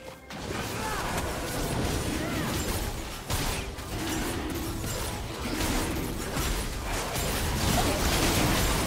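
Game spells whoosh and burst in a fast, busy fight.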